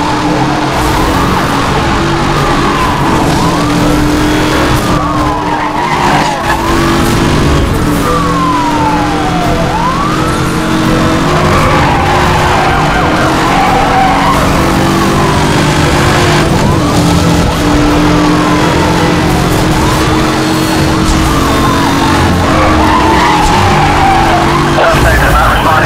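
A powerful car engine roars at high speed.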